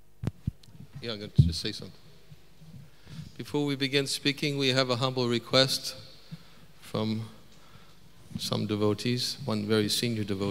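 A man speaks through loudspeakers in a large, echoing tent.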